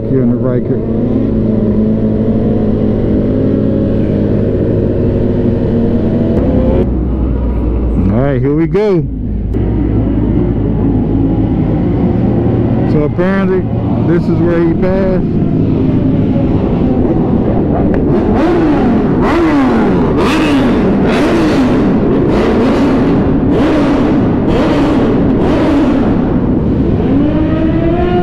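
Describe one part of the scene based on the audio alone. A motorcycle engine hums steadily at highway speed.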